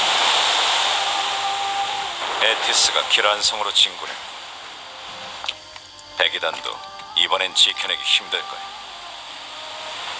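A waterfall roars.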